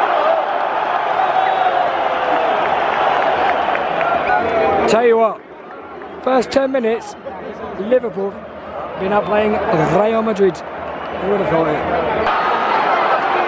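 A large stadium crowd roars loudly.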